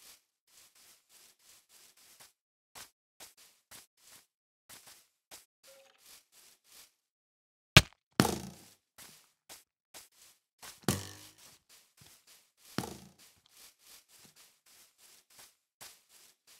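Footsteps pad steadily over grass and soft ground.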